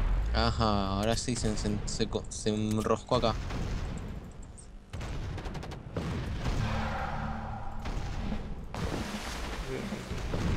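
Ship guns fire in repeated booms.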